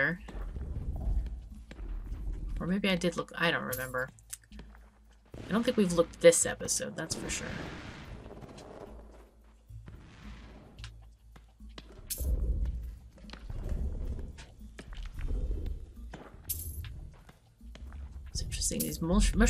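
Light footsteps patter across a stone floor.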